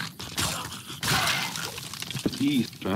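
A skeleton bursts apart with a crumbling clatter.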